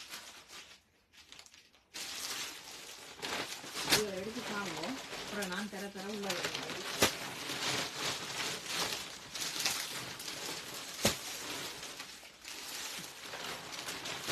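Fabric rustles as it is draped and handled.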